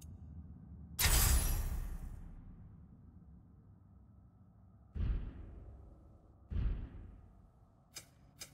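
Electronic whooshes sweep past.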